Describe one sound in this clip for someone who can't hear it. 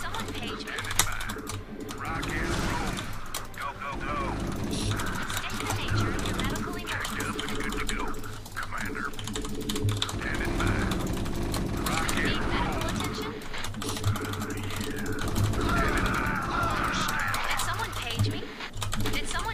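Rapid gunfire crackles in a battle.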